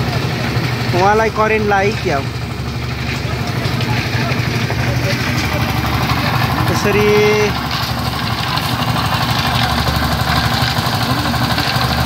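A machine engine runs with a steady low rumble.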